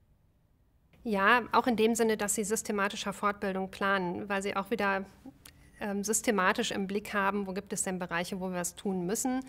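A woman speaks calmly and thoughtfully, close to a microphone.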